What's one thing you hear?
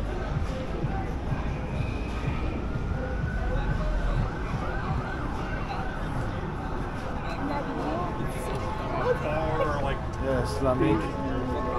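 Outdoors, a crowd of men and women murmurs and chatters around.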